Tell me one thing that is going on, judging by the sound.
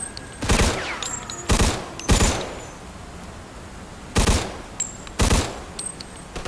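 A submachine gun fires loud bursts close by.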